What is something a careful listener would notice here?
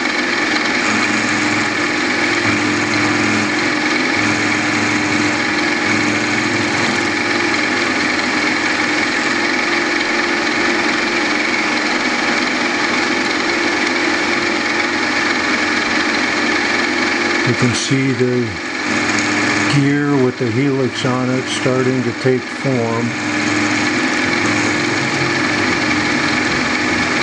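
A rotary cutter grinds against metal.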